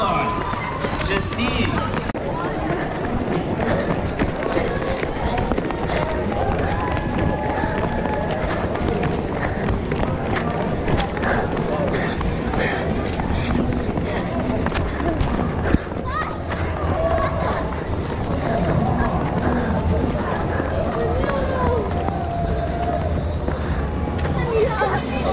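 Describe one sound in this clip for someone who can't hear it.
Footsteps patter on pavement as many children run.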